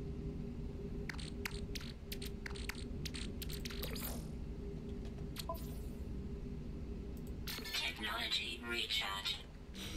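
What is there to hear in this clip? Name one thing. Menu selections click sharply, one after another.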